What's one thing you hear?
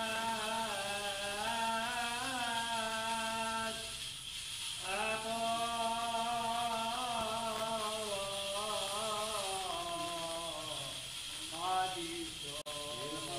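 A man chants a sung prayer in a slow, steady voice, echoing in a large hall.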